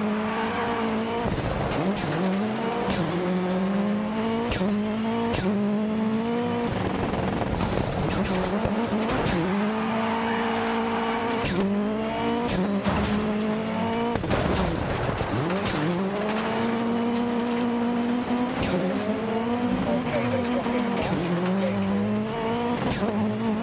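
Tyres slide and spray gravel on loose dirt.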